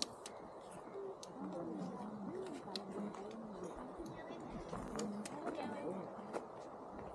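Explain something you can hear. A young man speaks calmly close by.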